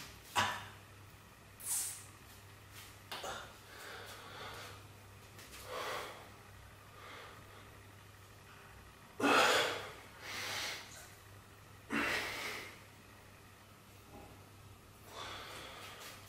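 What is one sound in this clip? A man exhales sharply and heavily in short bursts.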